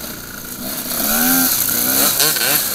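A motorcycle engine revs and whines nearby.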